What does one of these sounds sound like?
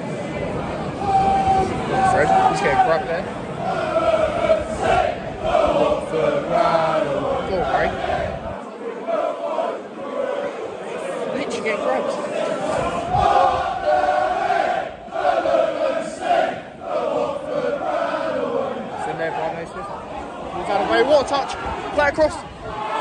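A young man sings loudly close by in a large echoing space.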